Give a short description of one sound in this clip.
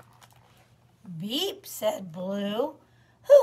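A woman reads aloud expressively, close by.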